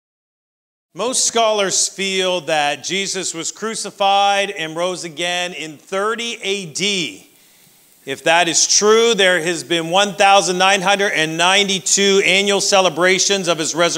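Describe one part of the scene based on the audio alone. A middle-aged man speaks calmly and clearly into a microphone.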